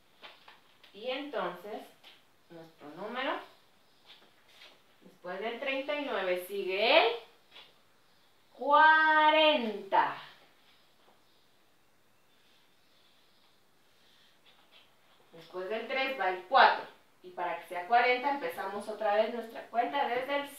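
A young woman speaks clearly and with animation, close by.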